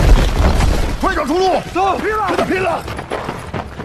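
A man speaks tensely.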